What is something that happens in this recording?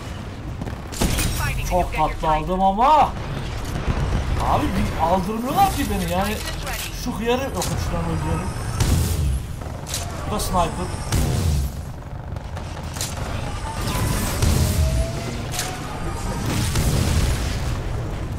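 A rifle fires sharp, booming shots in bursts.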